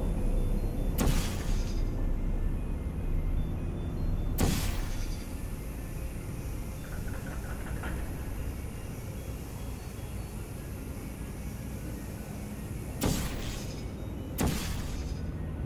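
A portal gun fires with sharp electric zaps.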